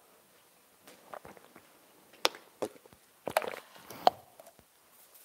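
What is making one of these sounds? A plastic water bottle crinkles as a man drinks.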